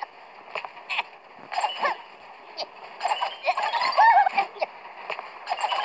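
Bright game chimes ring out in quick bursts as items are collected.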